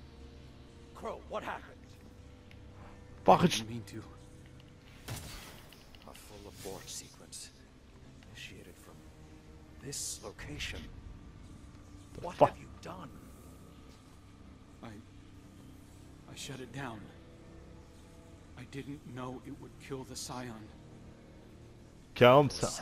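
A young man speaks anxiously.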